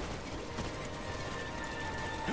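A bright game jingle chimes.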